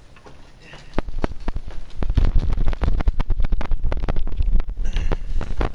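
Footsteps clank on ladder rungs.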